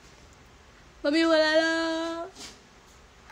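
A young woman lets out a loud, drawn-out exclamation.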